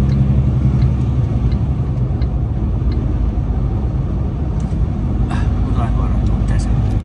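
A vehicle's engine hums and its tyres roar steadily on a wet highway.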